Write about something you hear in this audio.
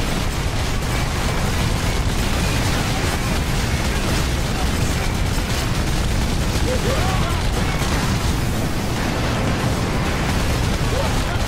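Heavy gunfire rattles rapidly and without pause.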